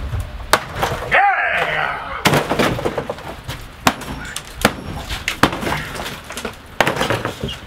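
Wooden boards crash and clatter onto a debris-strewn floor.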